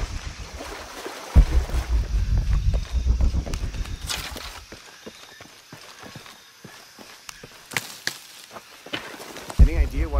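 Footsteps crunch on dry leaves.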